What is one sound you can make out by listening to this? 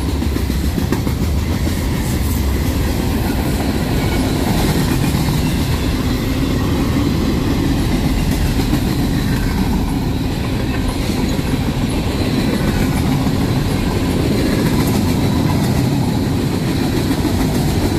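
A long freight train rumbles past close by, its wheels clattering and squealing on the rails.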